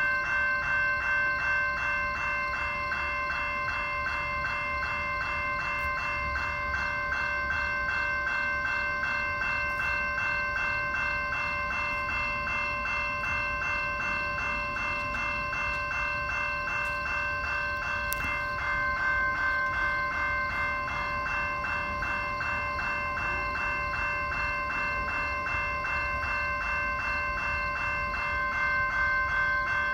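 A train rumbles closer along the tracks.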